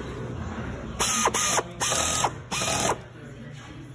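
An air gun blasts in short, loud hissing bursts.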